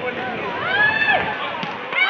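A volleyball is struck with a dull slap.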